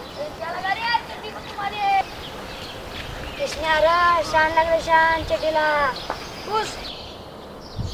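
Young boys talk animatedly, close by.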